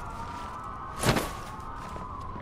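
A heavy thud sounds as a body lands and rolls.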